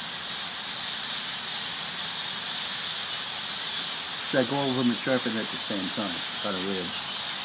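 A large flock of birds chatters and squeaks continuously in the trees.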